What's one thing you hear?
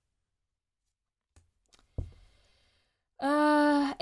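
A playing card slides and taps against a deck.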